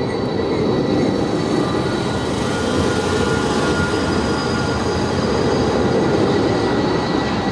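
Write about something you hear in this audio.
Tram wheels squeal on the rails.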